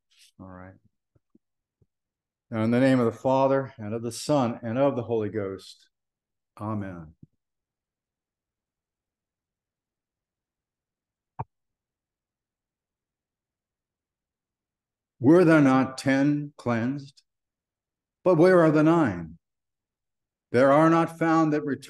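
An elderly man speaks slowly and calmly through an online call microphone, with long pauses.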